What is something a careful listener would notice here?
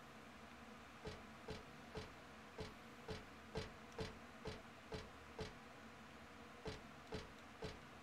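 Footsteps clank on a metal grating floor at a steady walking pace.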